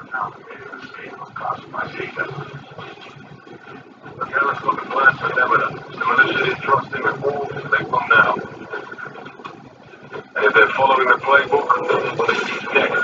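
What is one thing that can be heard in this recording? Gunfire and explosions from a video game play loudly through a television's speakers.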